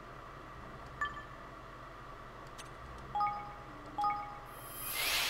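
Short menu chimes beep as options are picked.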